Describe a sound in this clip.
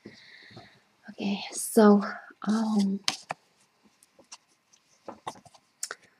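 Playing cards slide and rustle against each other.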